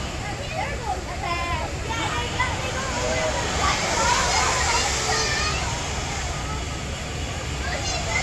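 Riders scream and shriek on a drop tower ride.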